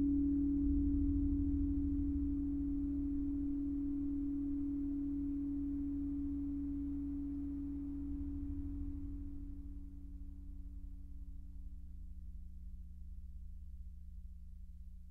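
A ringing electronic tone slowly fades away.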